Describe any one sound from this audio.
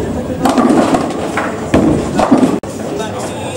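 Bowling pins clatter as a ball strikes them.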